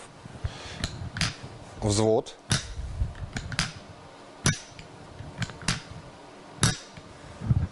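Wooden parts of a toy rifle click and clack as they are handled.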